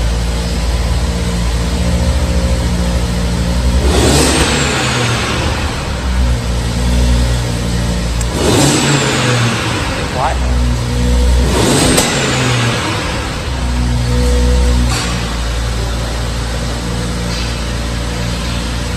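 A car engine idles with a deep, steady rumble.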